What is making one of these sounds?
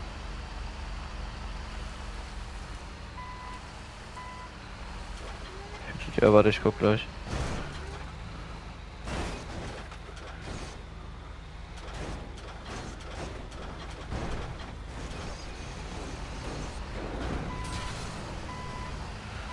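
A wheel loader's diesel engine rumbles as it drives.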